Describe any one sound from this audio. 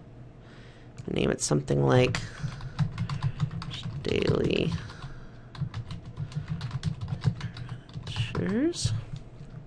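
Keys clack quickly on a computer keyboard.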